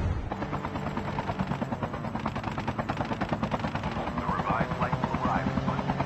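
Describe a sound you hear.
A helicopter's rotor thumps.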